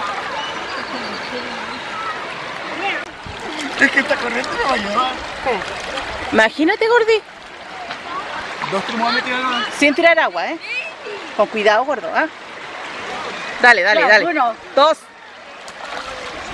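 A stream of water flows and gurgles outdoors.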